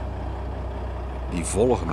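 A truck drives past on a nearby road.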